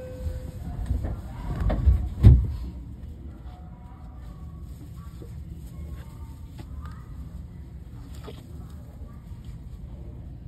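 A train's motor hums steadily as the carriage runs along the track.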